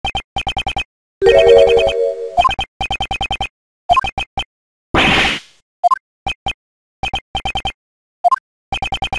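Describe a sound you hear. Short electronic beeps chatter quickly in bursts.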